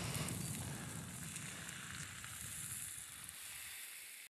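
A ladle stirs liquid in a metal pot.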